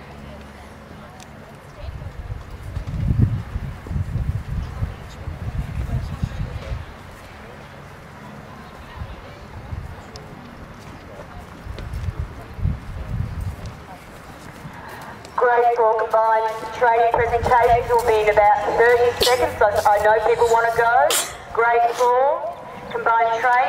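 A horse's hooves thud softly on grass.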